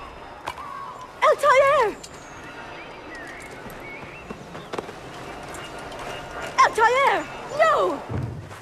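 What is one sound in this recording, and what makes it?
A woman cries out in alarm.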